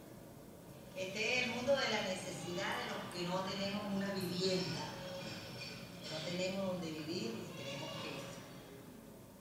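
A middle-aged woman speaks with feeling, heard through loudspeakers in a room.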